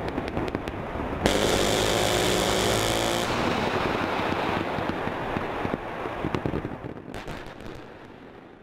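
Gunfire crackles in rapid bursts in the distance.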